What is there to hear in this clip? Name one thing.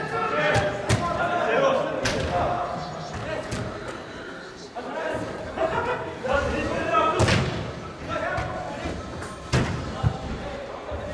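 A football thuds as it is kicked and bounces off the boards.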